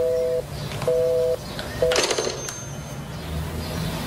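A telephone receiver clacks down onto its cradle.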